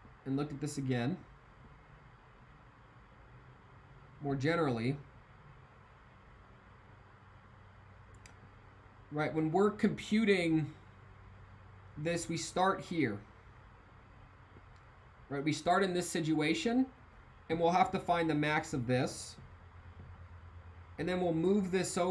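A young man talks calmly into a close microphone, with pauses.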